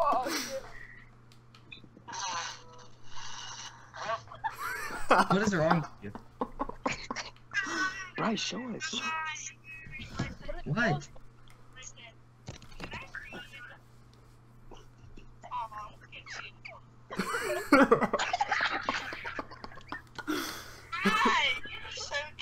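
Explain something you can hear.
A teenage boy talks with animation over an online call.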